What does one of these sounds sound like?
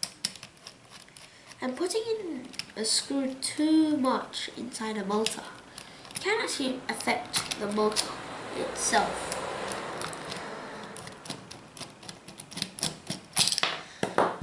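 A screwdriver turns a small screw into metal with faint scraping.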